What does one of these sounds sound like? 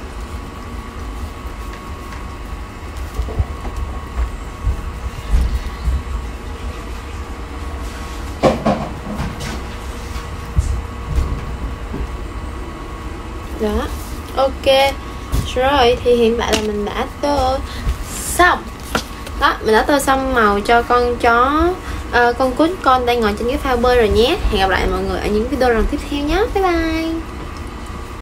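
Paper rustles and crinkles as pages are handled.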